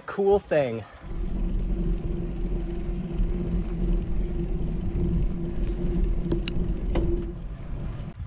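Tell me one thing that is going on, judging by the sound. Wind rushes steadily past a fast-moving bicycle.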